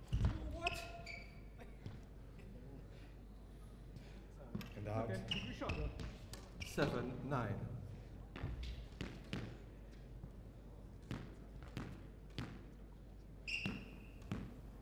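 Shoes squeak on a court floor.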